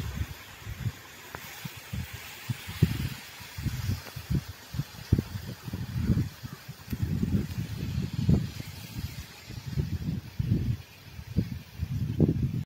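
Palm fronds rustle in the wind.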